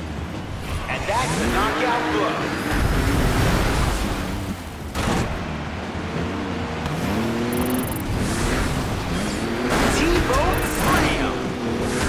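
Tyres screech as a car skids and slides.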